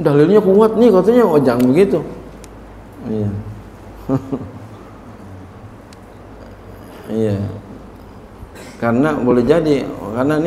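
A middle-aged man preaches with animation into a microphone, heard over a loudspeaker in an echoing hall, with pauses between phrases.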